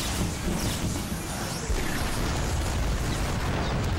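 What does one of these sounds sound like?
Horses gallop in a charge.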